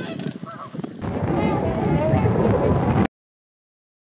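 A flock of birds takes off with a rush of beating wings.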